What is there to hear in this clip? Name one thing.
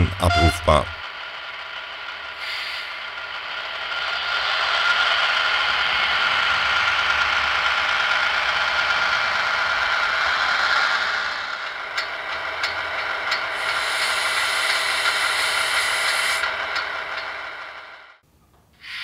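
A small diesel locomotive engine hums and rumbles steadily.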